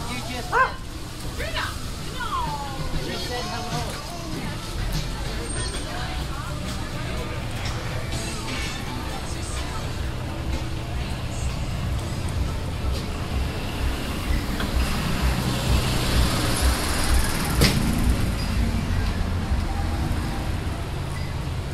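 Traffic rumbles steadily outdoors.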